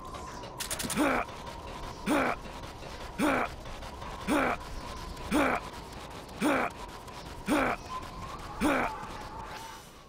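A cardboard box thumps and scrapes along a metal walkway in a steady rhythm.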